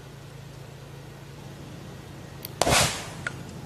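A fuse fizzes and sprays sparks.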